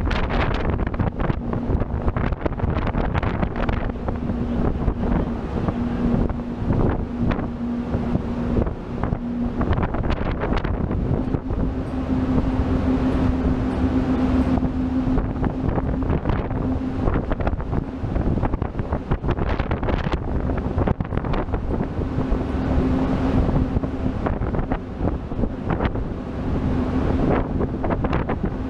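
A boat engine drones steadily with a low hum.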